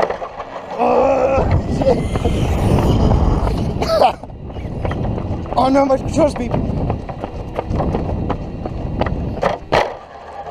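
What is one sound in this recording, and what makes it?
Plastic tyres rumble over rough pavement.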